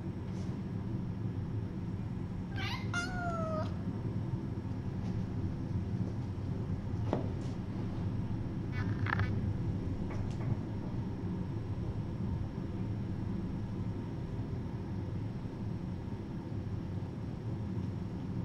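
Kittens' paws patter softly on a hard floor.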